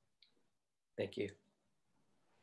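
Wooden clappers knock together twice.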